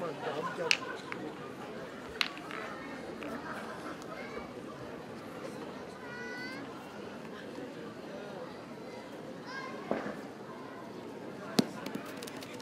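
Metal boules clack sharply together.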